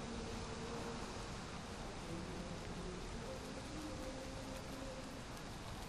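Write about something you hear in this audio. A fire crackles in a brazier.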